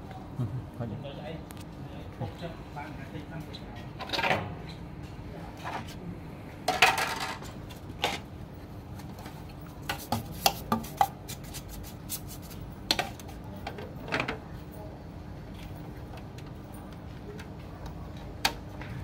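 Plastic parts of a printer click and rattle as hands handle them.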